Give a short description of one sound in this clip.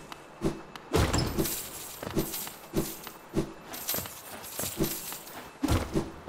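Blade slashes strike creatures with sharp thwacks.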